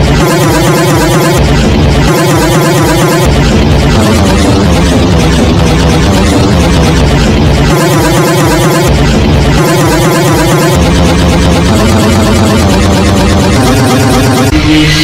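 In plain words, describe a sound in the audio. Loud electronic dance music plays with a steady pounding beat.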